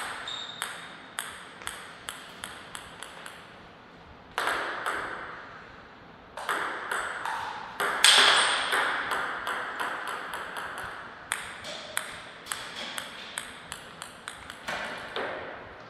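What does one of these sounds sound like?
A ping-pong ball clicks sharply back and forth across a table in a fast rally.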